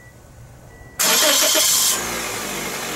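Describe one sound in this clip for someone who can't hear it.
An engine's starter motor cranks briefly.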